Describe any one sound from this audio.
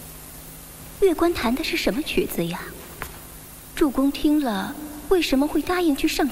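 A young woman speaks softly and slowly.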